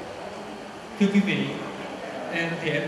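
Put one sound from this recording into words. A young man speaks into a microphone over a loudspeaker.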